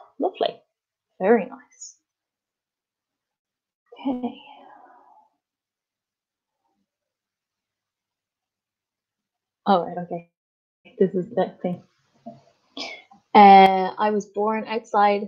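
A young woman speaks calmly through an online call, with pauses.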